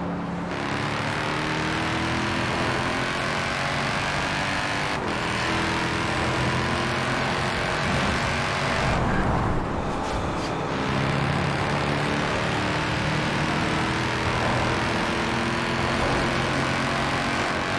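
Tyres hum steadily on a smooth road.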